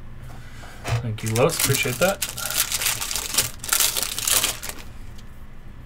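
A foil wrapper crinkles and tears open.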